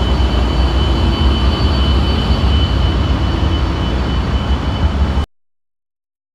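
A diesel locomotive engine rumbles steadily at idle.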